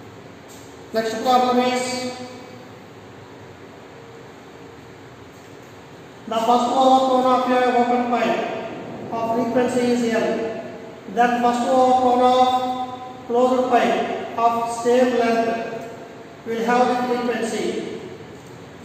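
A man speaks calmly, explaining.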